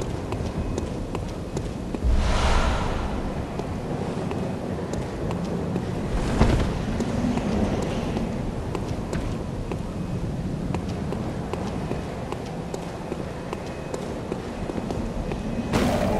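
Footsteps tap on stone paving.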